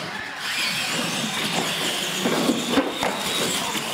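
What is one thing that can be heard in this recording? A toy truck crashes and tumbles onto a hard floor.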